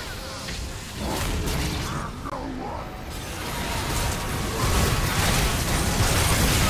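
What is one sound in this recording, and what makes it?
Magic spells whoosh, crackle and explode in a fast battle.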